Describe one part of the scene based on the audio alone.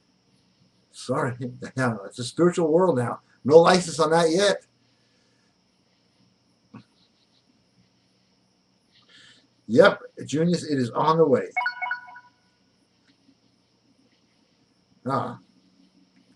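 A middle-aged man speaks with animation close to a microphone, in short bursts.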